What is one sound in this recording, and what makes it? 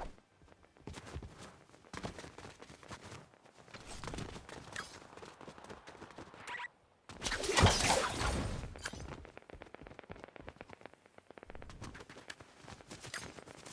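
Footsteps patter quickly across the ground.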